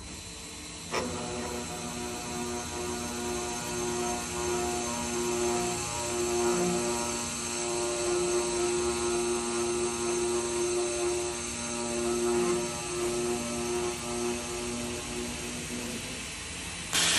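A saw machine cuts through a steel bar with a steady whine.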